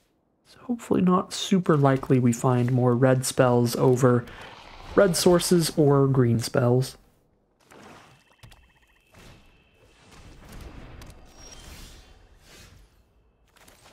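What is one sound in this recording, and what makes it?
Digital card game effects whoosh and chime as cards are played.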